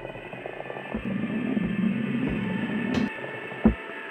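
A heavy ball rolls with a low rumble along a wooden track.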